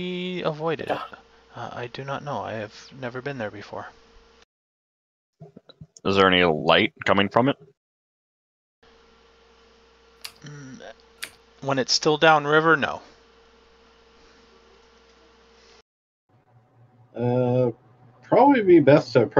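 Several men talk in turns over an online call, heard through headset microphones.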